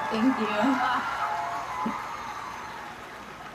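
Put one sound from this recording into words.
A young woman sings into a microphone, heard through a television speaker.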